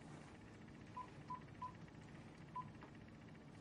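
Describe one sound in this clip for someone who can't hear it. A handheld game beeps softly a few times.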